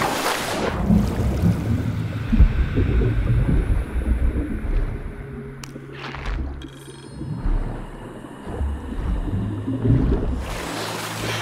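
Water rumbles and bubbles while swimming underwater.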